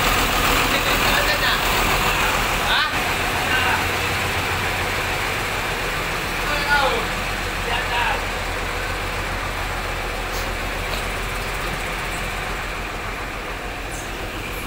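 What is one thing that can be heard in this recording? A diesel bus engine idles with a low, steady rumble.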